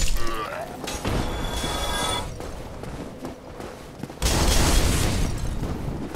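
Armored footsteps clank and thud on stone as a knight runs.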